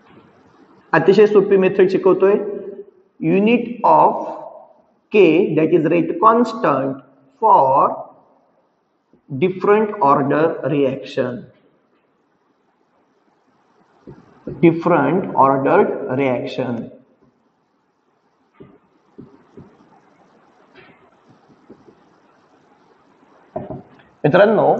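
A man speaks calmly and clearly, like a teacher explaining, close by.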